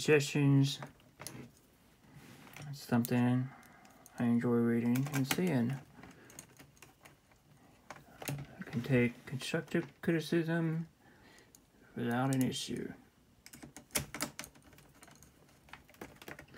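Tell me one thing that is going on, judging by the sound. Plastic parts click and knock as they are handled.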